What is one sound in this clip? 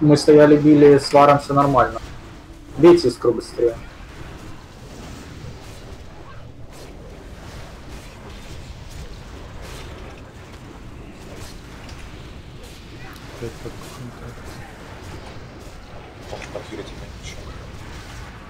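Spells crackle and whoosh in a fantasy battle.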